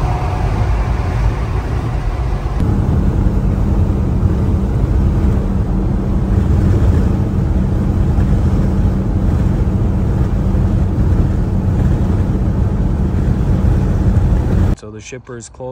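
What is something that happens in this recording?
A truck engine rumbles loudly and steadily from inside the cab.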